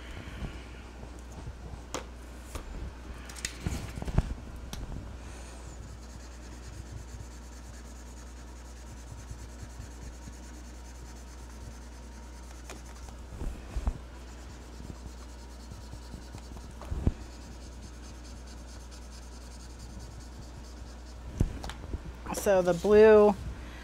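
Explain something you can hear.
A sheet of paper slides and taps on a table as it is turned.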